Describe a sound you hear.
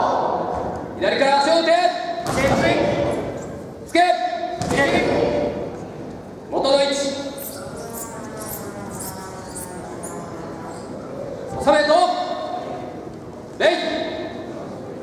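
Young men shout loudly in a large echoing hall.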